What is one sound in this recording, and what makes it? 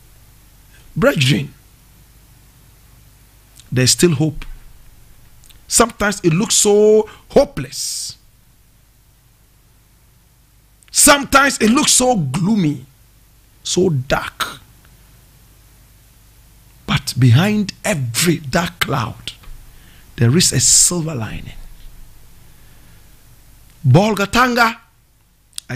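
A man speaks with animation into a close microphone, in bursts with pauses.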